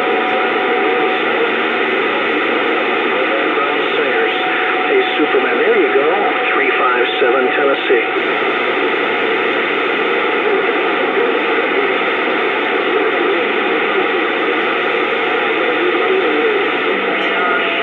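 A radio hisses with steady static from its speaker.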